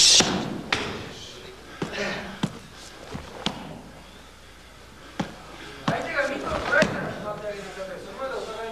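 Fists thud against a padded striking shield.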